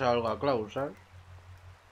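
A man speaks in a low, gruff voice.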